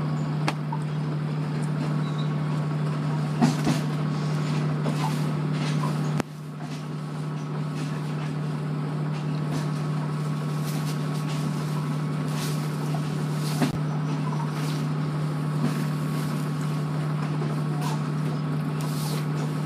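Bedsheets rustle as they are spread out and tucked in.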